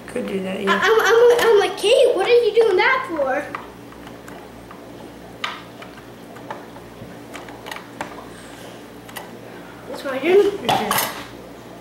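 Small plastic game pieces click on a table.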